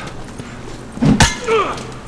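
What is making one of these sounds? A heavy punch lands with a thud during a scuffle.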